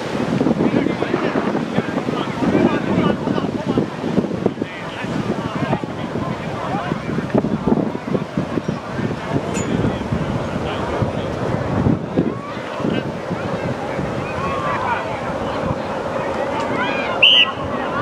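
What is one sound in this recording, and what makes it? A crowd of young people chatter and call out nearby outdoors.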